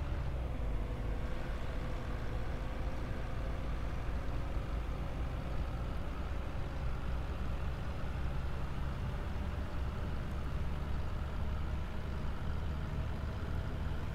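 A bus engine hums steadily with a slowly rising whine.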